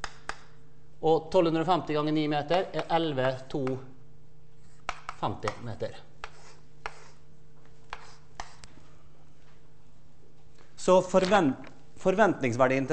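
A man lectures through a microphone, speaking calmly and pausing often.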